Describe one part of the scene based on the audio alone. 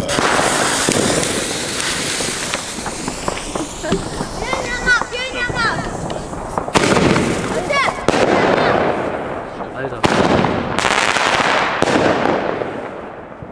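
Firework fountains hiss and crackle nearby.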